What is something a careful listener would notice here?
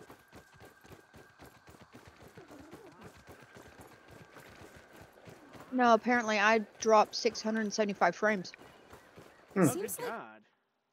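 Footsteps patter quickly on soft ground.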